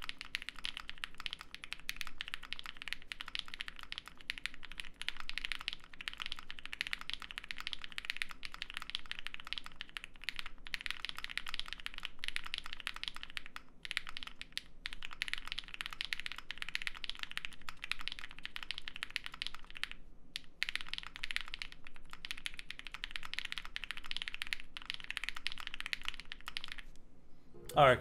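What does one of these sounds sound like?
Mechanical keyboard keys clack rapidly under fast typing, heard up close.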